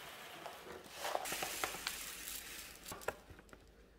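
Oat grains pour into a wooden bowl.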